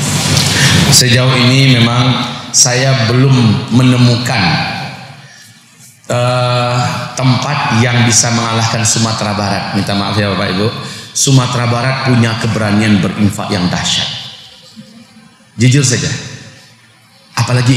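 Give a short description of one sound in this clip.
A man speaks with emotion into a microphone in a halting voice.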